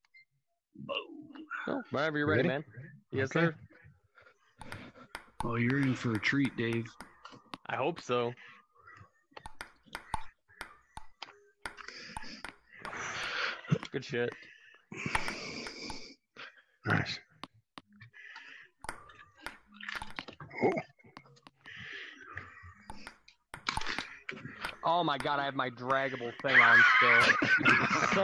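A ping-pong ball clicks back and forth on a table and paddles.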